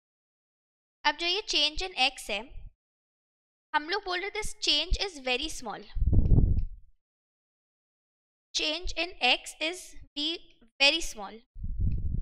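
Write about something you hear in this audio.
A young woman speaks calmly into a microphone, explaining.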